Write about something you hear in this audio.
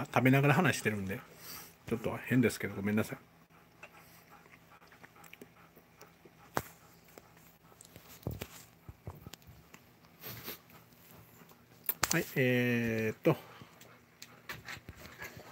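A dog pants steadily nearby.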